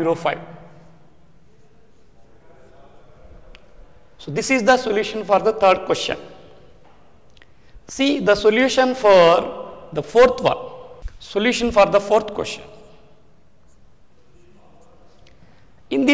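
A man lectures calmly and clearly into a close microphone, in short bursts with pauses.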